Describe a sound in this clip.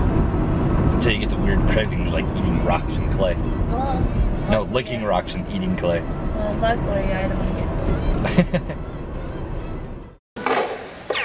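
A man talks cheerfully nearby.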